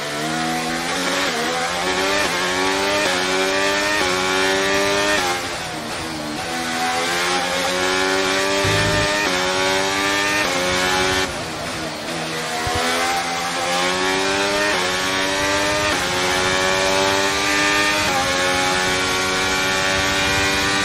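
A racing car engine screams, rising in pitch through each gear and dropping sharply at each shift.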